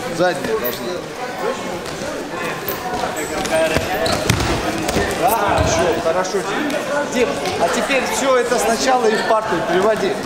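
A middle-aged man talks loudly and instructs, echoing in a large hall.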